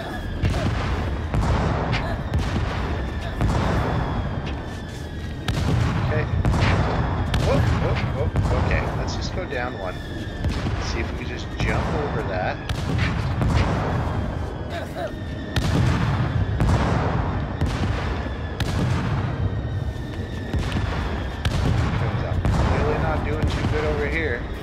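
Explosions boom again and again with a deep rumble.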